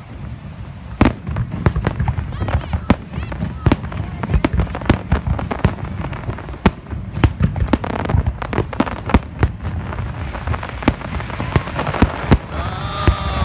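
Fireworks bang and pop loudly in rapid bursts.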